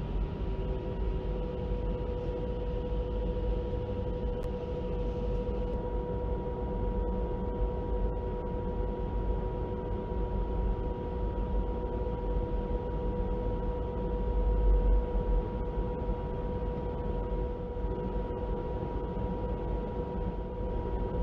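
Jet engines hum and whine steadily as an airliner taxis.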